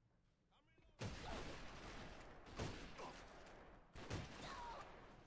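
A rifle fires several loud, sharp shots that ring out briefly.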